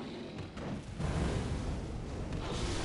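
A fire bursts with a loud roaring whoosh.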